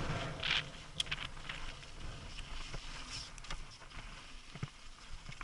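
Gravel and small stones clatter under the wheels.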